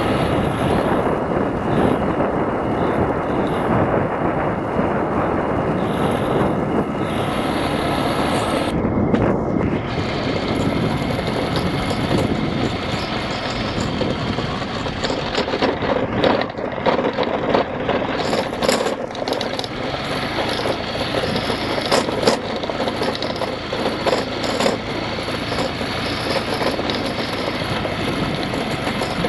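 Tyres rumble over a sandy dirt road.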